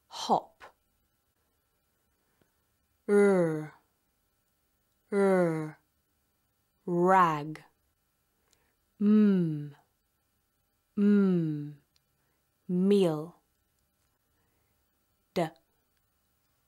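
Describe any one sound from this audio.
A young woman speaks single words slowly and clearly into a close microphone, with pauses between them.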